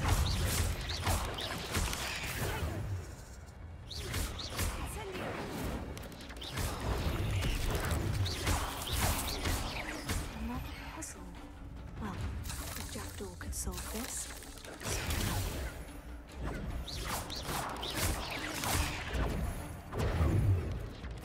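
Magic spells crack and whoosh in bursts during a fight.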